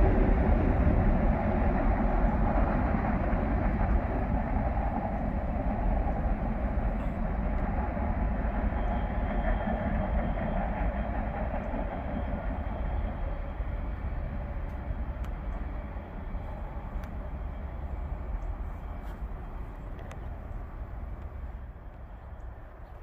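A train rumbles along the tracks in the distance and slowly fades away.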